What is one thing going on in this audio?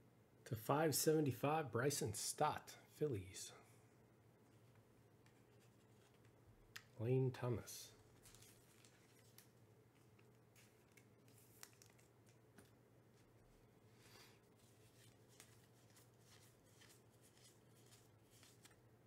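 Trading cards rustle and flick between fingers.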